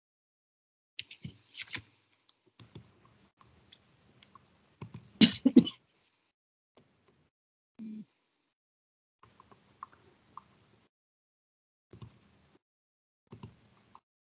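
A woman talks in short bursts over an online call.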